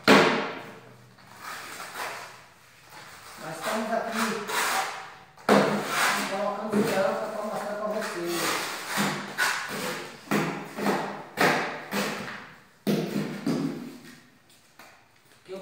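A trowel scrapes wet mortar.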